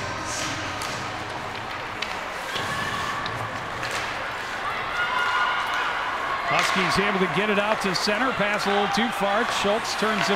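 Hockey sticks clack against each other and the puck.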